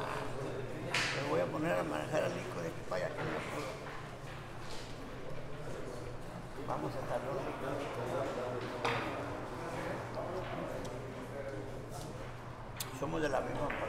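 Billiard balls clack together sharply.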